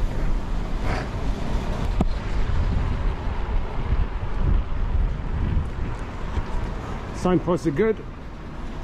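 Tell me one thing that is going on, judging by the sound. Bicycle tyres rumble and rattle over wooden boards.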